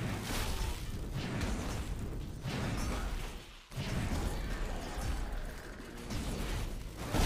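Electronic battle effects crackle and burst in a game.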